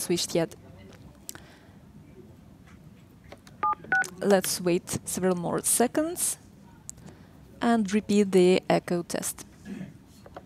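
A young woman speaks calmly into a headset microphone.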